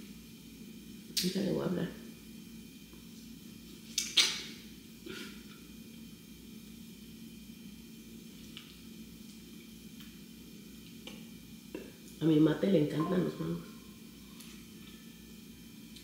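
A woman bites into crunchy food.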